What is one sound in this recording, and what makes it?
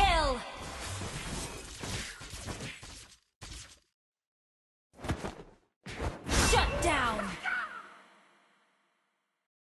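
Video game spell effects crackle and boom during a fight.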